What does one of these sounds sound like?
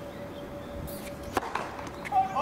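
A tennis racket strikes the ball hard on a serve.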